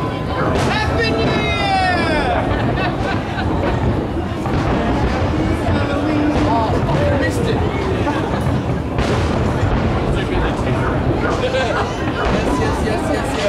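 Fireworks boom and crackle in the distance, outdoors.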